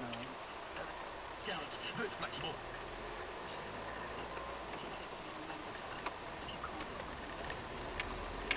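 Tyres roll over rough tarmac.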